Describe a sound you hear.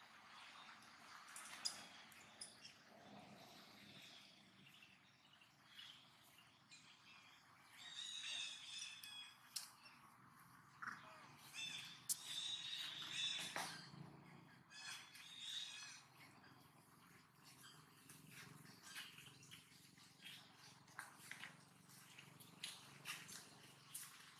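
A small monkey's feet rustle through dry grass and leaves.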